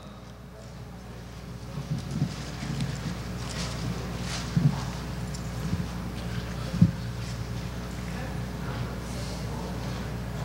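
Men and women murmur softly in a large echoing hall.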